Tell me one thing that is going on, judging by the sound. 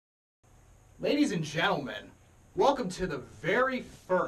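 A young man talks excitedly, close to a microphone.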